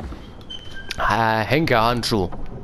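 A heavy chest lid creaks open.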